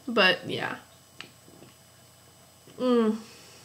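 A young woman sips and swallows a drink close by.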